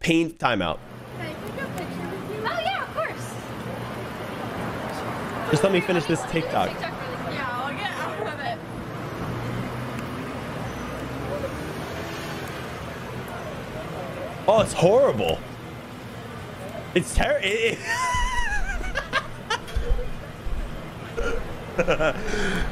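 A young woman talks and laughs outdoors.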